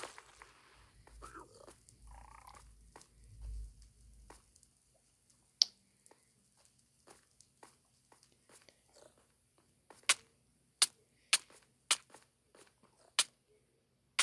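Footsteps tap on hard stone, in a game.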